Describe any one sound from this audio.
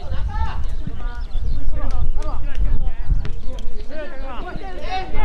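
Young men shout and call to each other outdoors, some way off.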